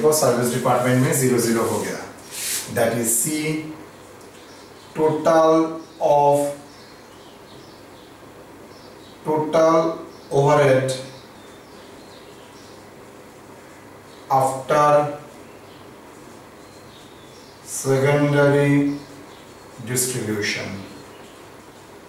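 A man speaks calmly in short phrases.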